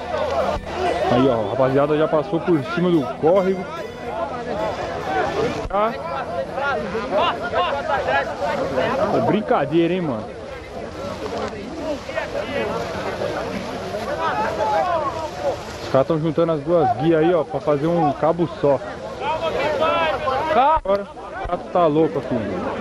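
A crowd of men shouts and yells close by, outdoors.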